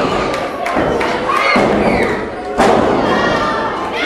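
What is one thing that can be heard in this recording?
A wrestler's body slams onto a wrestling ring mat with a thud.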